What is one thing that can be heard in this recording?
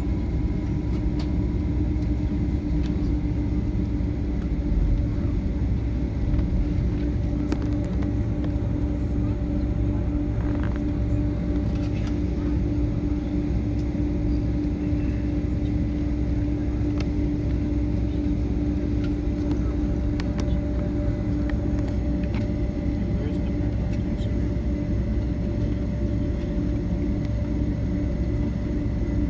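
A jet airliner's engines hum and whine steadily inside the cabin as the plane taxis.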